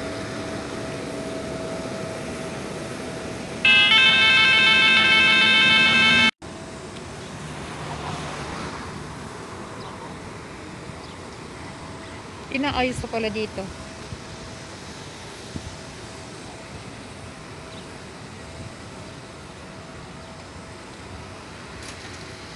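Car engines idle nearby in a line of traffic.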